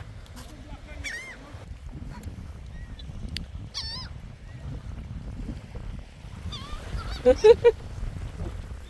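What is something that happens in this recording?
Seagulls call with high cries nearby.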